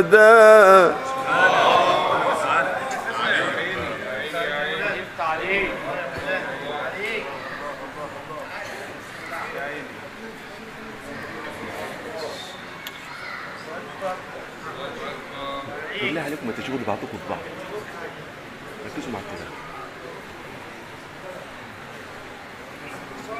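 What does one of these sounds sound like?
A crowd of men murmurs and calls out in praise.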